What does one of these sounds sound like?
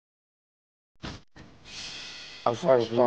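A hoe strikes into soil.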